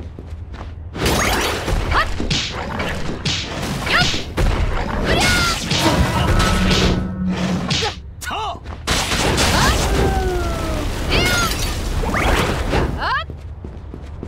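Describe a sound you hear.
Sword slashes and impacts clash in fast bursts.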